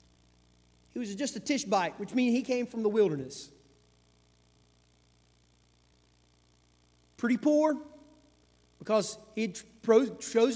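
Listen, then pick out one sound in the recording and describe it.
A man speaks calmly into a microphone, with long pauses.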